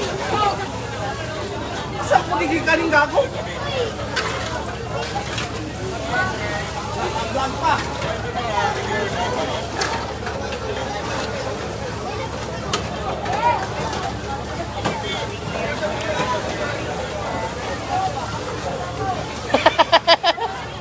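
A crowd of men talk and shout outdoors, close by.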